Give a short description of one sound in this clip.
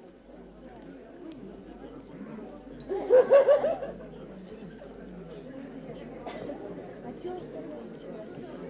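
An audience murmurs and chatters in a room.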